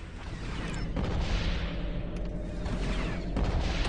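A blaster rifle fires rapid shots.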